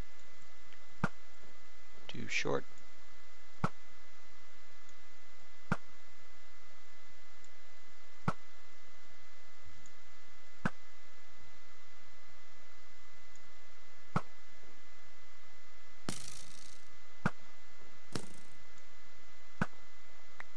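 A bow twangs sharply as arrows are loosed, again and again at a steady pace.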